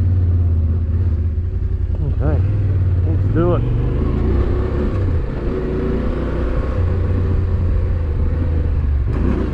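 A motorcycle engine rumbles steadily as the bike rides along.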